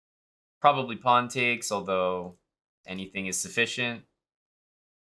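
A young man speaks casually and close to a microphone.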